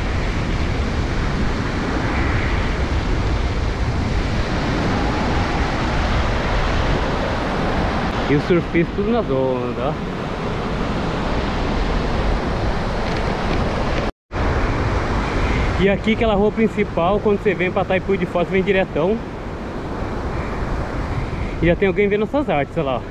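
Wind blusters across the microphone outdoors.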